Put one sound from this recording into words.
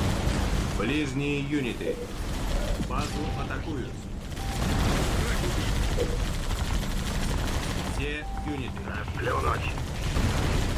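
Menu chimes sound in short, bright tones.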